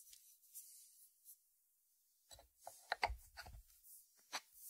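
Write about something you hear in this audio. A ceramic lid clinks as it is lifted off and set back on a dish.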